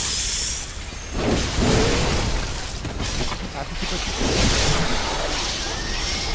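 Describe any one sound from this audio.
An axe swishes and thuds in quick blows.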